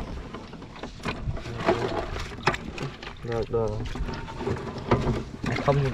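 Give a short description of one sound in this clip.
A plastic box knocks and rattles.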